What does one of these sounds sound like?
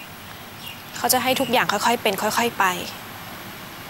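A young woman speaks sharply and close by.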